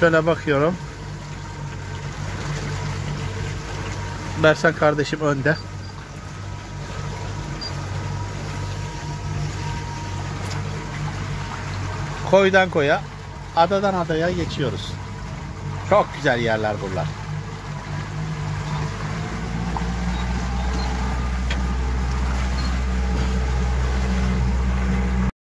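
A boat engine hums steadily, growing louder toward the end.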